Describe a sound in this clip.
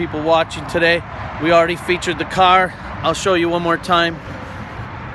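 A man speaks with animation close to a phone microphone.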